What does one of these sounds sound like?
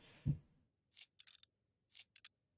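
A metal side panel is lifted off a computer case with a soft clatter.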